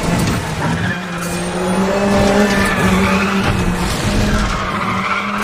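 A sports car engine roars steadily at high revs.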